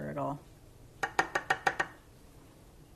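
A spatula taps and scrapes against a glass jar.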